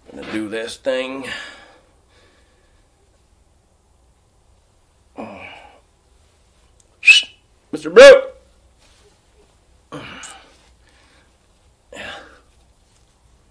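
A man speaks close by in short bursts, with pauses between.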